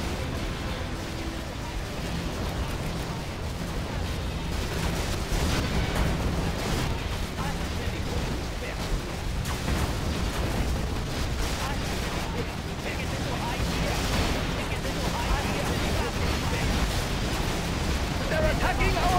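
Tank engines rumble low and steadily.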